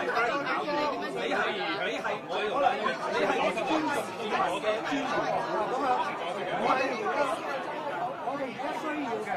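Several men argue loudly over one another.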